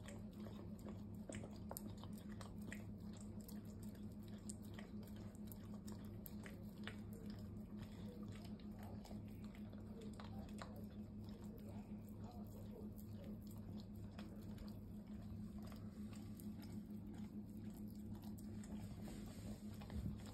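A dog licks food off a spoon with wet smacking sounds.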